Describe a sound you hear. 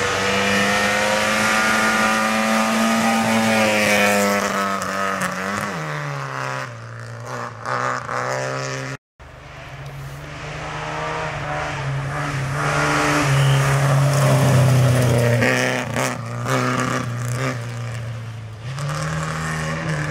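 Tyres crunch and spray gravel on a dirt road.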